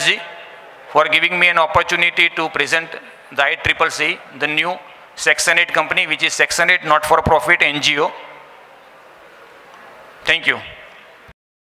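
A man speaks with animation through a microphone and loudspeakers in a large hall.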